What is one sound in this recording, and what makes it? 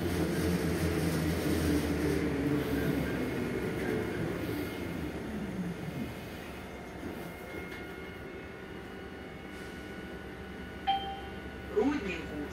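The bus interior rattles and creaks over the road.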